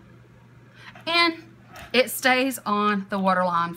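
A woman speaks close to a microphone with animation.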